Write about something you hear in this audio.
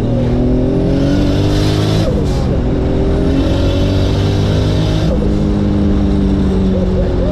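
A car engine roars loudly, its pitch jumping as the gears shift.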